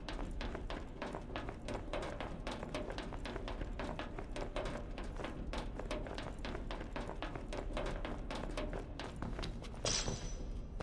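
Footsteps clang quickly on metal grating.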